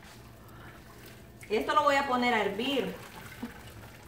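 Thick sauce pours and splashes into a pot.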